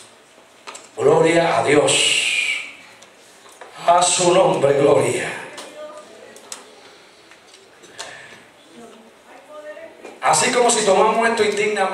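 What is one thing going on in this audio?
A man preaches loudly through a microphone and loudspeakers in a large echoing hall.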